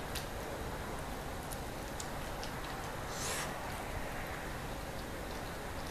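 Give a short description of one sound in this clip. A woman bites into a slice of pizza crust close to a microphone.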